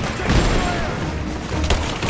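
An explosion booms and roars.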